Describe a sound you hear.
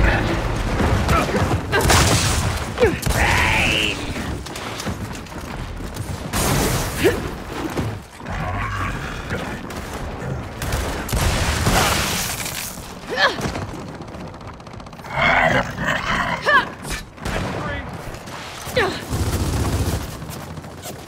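Guns fire in loud bursts of shots.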